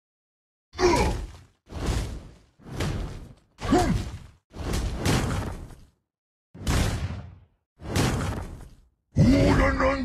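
Weapon strikes land in short, sharp bursts.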